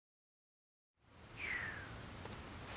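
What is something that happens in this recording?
A cartoon jump sound effect springs out.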